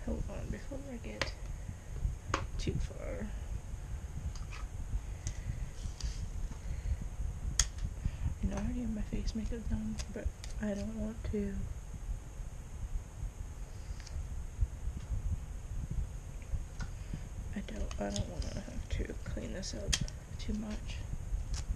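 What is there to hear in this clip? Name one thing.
A young woman talks quietly and casually close to a microphone.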